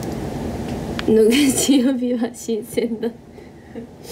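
A young woman speaks casually close by.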